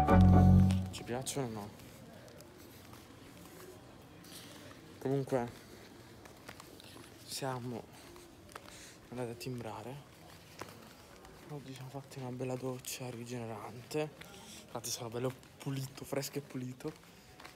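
A young man talks calmly and close up.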